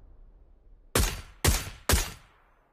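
A rifle fires several loud shots.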